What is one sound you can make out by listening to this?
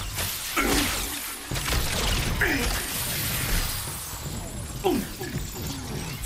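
Energy blasts zap and whoosh repeatedly.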